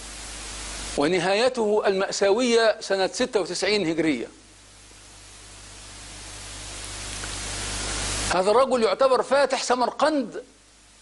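A middle-aged man speaks with animation into a close microphone.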